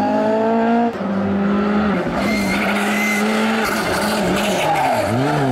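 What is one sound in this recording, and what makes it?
A second rally car engine roars and revs as the car approaches up close.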